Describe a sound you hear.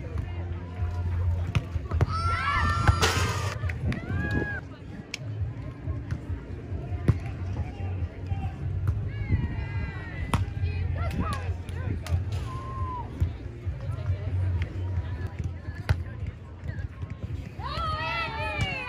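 A volleyball is struck with hands, thumping sharply.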